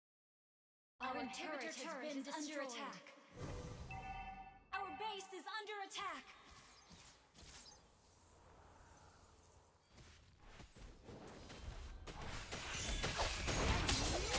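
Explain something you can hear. Electronic game sounds chime, whoosh and clash.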